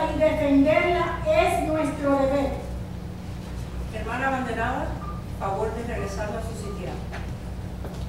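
A man speaks loudly through a loudspeaker in an echoing hall.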